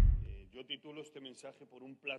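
A man speaks through a microphone in a large room.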